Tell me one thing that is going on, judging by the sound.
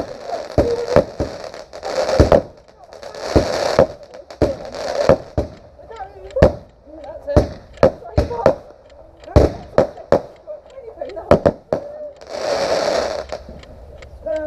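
Fireworks hiss and crackle as they burst.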